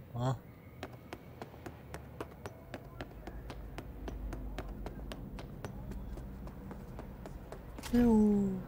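Quick footsteps run steadily on a hard floor.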